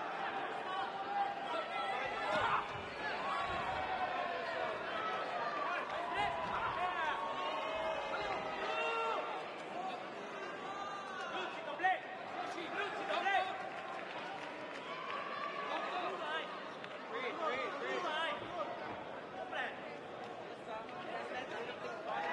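A crowd cheers and shouts loudly in a large echoing arena.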